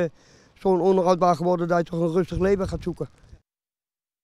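An elderly man speaks calmly into a microphone outdoors.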